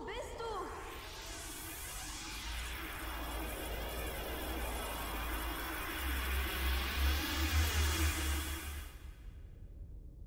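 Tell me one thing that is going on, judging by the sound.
A deep, shimmering rumble swells louder and then suddenly stops.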